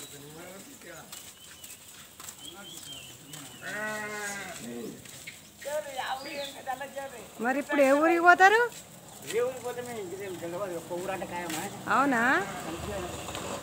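Many goats bleat loudly, close by.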